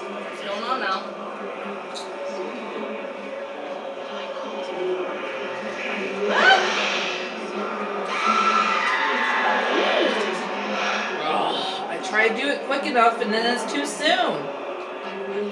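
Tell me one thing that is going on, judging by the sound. Eerie ghostly wails rise and fall.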